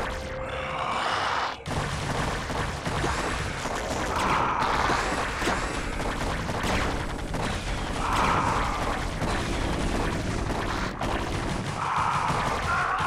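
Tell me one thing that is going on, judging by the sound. Gunfire and small explosions crackle in a video game battle.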